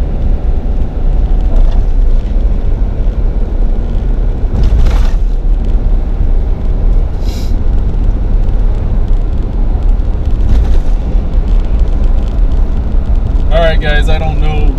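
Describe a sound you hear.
A car engine and tyres rumble steadily on a highway.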